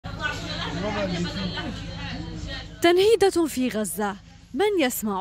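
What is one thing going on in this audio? An elderly woman speaks tearfully up close, her voice breaking as she cries.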